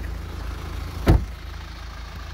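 An SUV's door slams shut.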